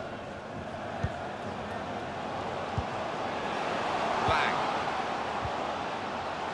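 A football is kicked with dull thuds several times.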